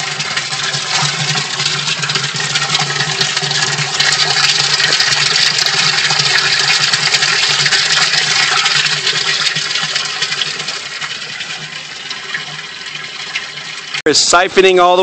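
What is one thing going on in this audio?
Water pours steadily into a tank and splashes.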